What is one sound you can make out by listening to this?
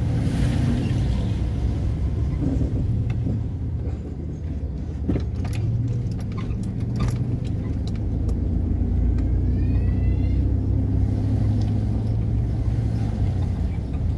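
Tyres crunch and rattle over a rough gravel road.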